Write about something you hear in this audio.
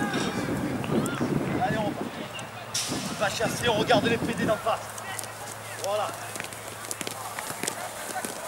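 A group of men talk and shout outdoors.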